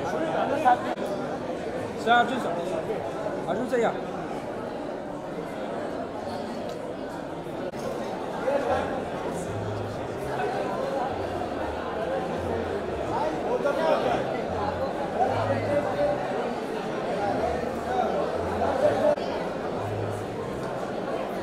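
A crowd of men and women chatter loudly all around.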